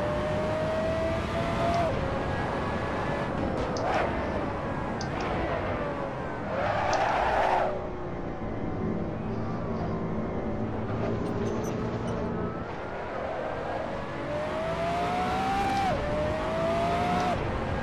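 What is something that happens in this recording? A racing car engine roars, rising in pitch and dropping sharply at each gear change.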